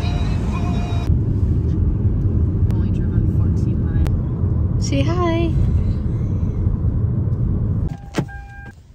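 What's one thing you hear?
A car engine hums and tyres rumble on the road.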